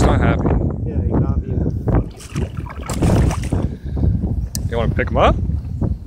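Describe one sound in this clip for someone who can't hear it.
Water splashes as a fish is pushed back into shallow water.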